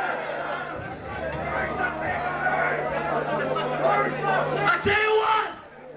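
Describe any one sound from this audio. Drums are struck hard and fast.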